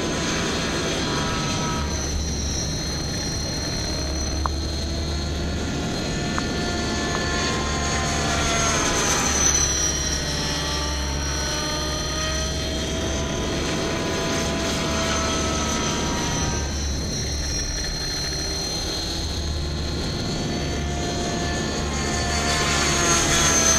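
A model helicopter's engine whines steadily with rotor buzz, its pitch rising and falling.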